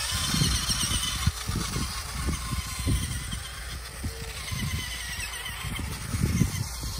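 Toy truck tyres crunch over loose soil.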